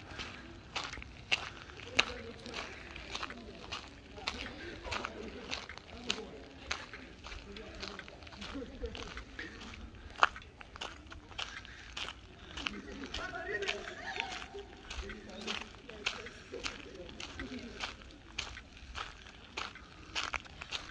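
Footsteps crunch steadily on gravel close by.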